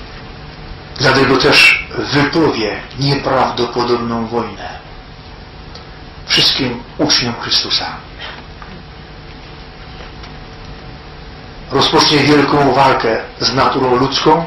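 A man speaks slowly and calmly into a microphone, with long pauses, in an echoing room.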